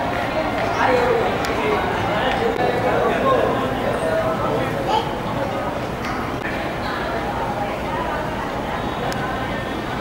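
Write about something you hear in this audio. A group of men talk and murmur nearby.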